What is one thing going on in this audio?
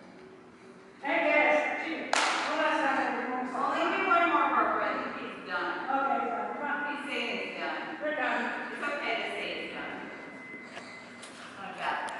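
An elderly woman talks to a dog and calls out commands with animation.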